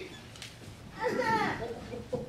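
A group of men and women begin to sing together.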